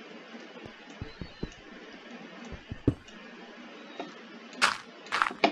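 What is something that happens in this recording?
Blocks thud and crack as they are broken in a game.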